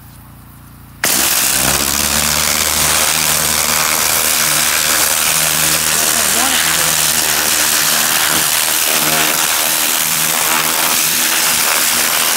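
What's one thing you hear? A hose nozzle sprays a strong jet of water onto soil with a loud hiss.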